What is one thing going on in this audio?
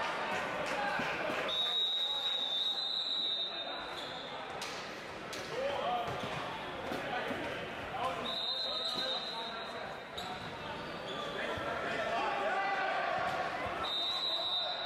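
Young men call out and shout to each other, echoing.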